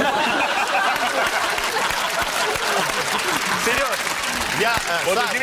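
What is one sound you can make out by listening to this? A group of men laugh loudly and heartily close by.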